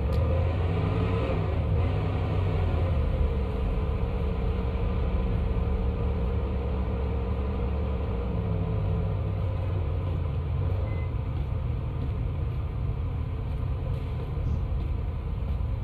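A car engine hums low from inside the cabin as the car drives along.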